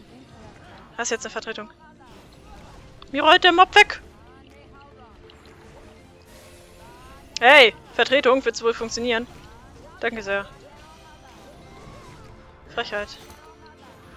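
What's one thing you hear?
Magic spells burst with bright ringing chimes in short blasts.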